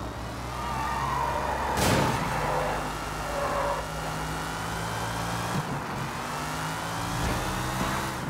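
Tyres screech as a car skids around a bend.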